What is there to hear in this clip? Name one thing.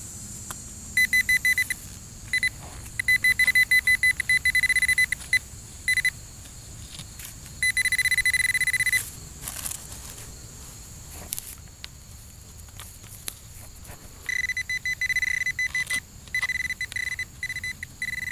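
A metal detector probe beeps in rapid, high-pitched bursts.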